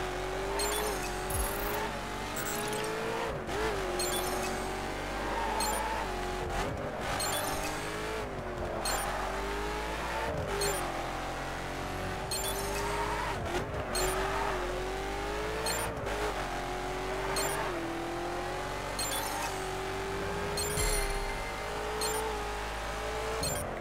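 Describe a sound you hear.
A sports car engine roars at high speed, its pitch climbing and dropping sharply with each gear change.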